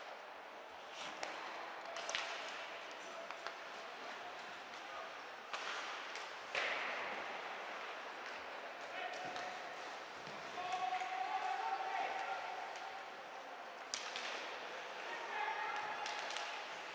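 Skates scrape across the ice in a large echoing arena.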